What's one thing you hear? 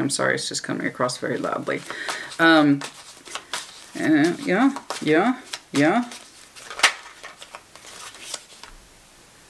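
Playing cards shuffle and riffle in a woman's hands.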